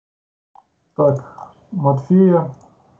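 A man speaks briefly over an online call.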